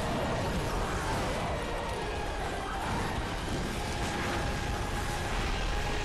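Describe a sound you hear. Weapon strikes and magic blasts crash in a fight.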